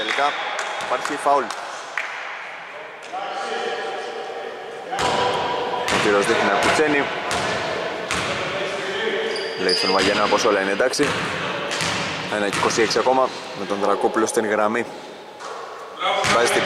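Men shout and call out to each other across an echoing hall.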